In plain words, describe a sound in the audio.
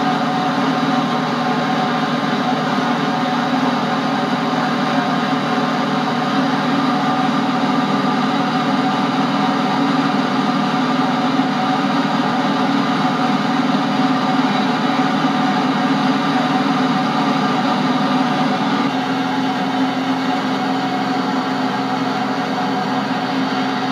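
A small plane's engine drones steadily from inside the cabin.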